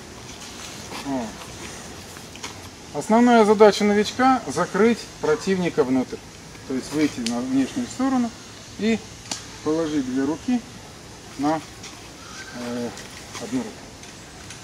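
A middle-aged man speaks calmly nearby, explaining.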